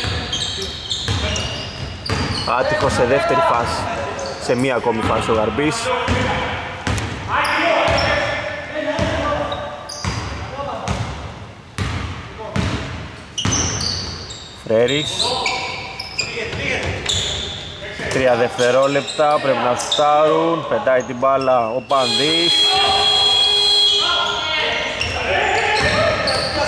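A basketball bounces on a hard floor, echoing in a large empty hall.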